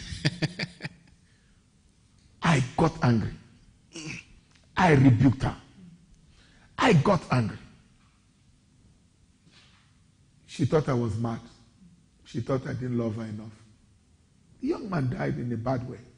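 A man speaks calmly and deliberately into a microphone, with pauses.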